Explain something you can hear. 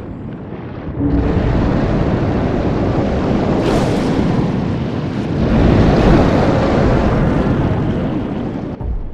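Water churns and rushes in deep, muffled bursts.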